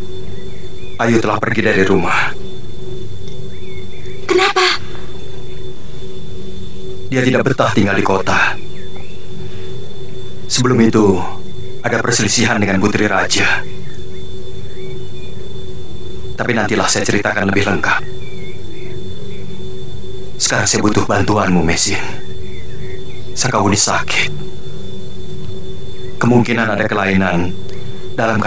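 A young woman speaks earnestly, close by.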